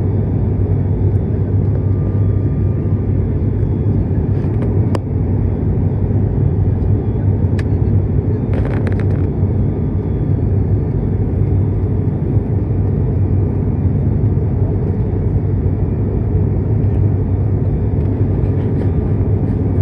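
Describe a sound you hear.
A propeller engine drones loudly and steadily, heard from inside the cabin.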